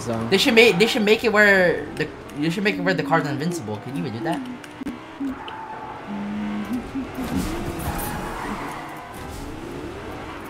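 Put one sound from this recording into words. A car engine roars as a car speeds up.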